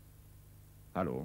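A man speaks into a phone.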